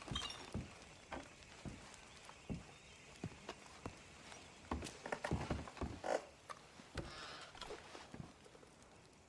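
Footsteps thud on wooden floorboards indoors.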